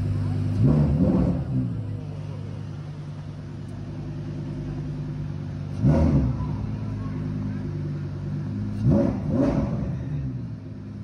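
A sports car engine revs sharply in short bursts.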